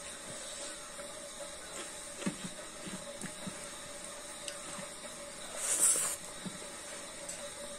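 A young woman chews and smacks her lips.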